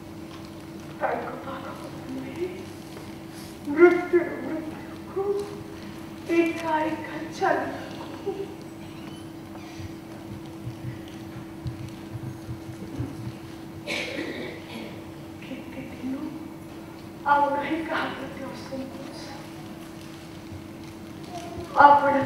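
A woman speaks dramatically on a stage, with pauses between lines.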